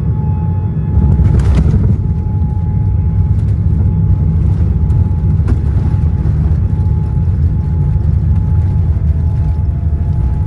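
Aircraft wheels rumble and rattle along a runway.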